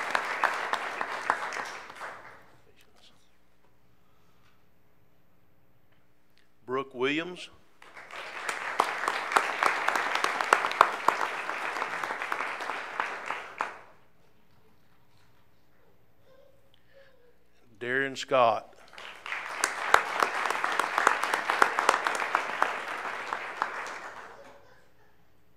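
A room full of people applauds.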